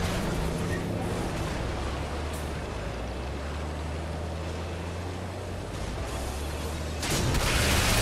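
A truck engine rumbles and roars.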